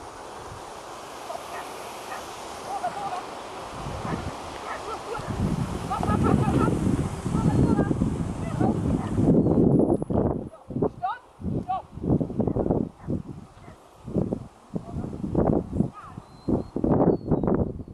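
Outdoors, wind rumbles loudly against the microphone.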